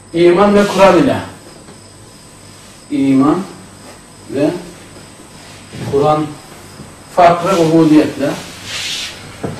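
A man speaks in short bursts, close by.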